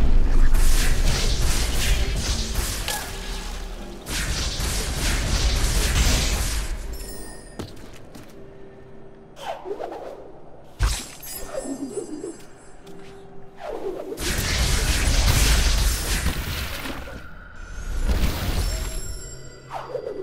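Magical energy blasts whoosh and burst loudly in rushing waves.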